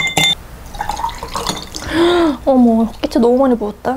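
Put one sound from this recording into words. Liquid glugs as it is poured from a bottle into a glass.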